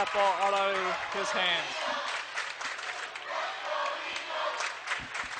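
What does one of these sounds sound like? A crowd claps hands rapidly.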